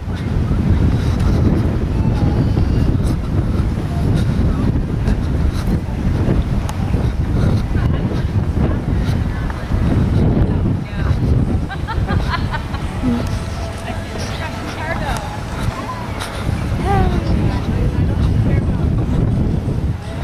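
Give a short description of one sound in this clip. Wind blows hard against the microphone outdoors.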